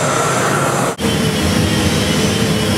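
An angle grinder whines against metal.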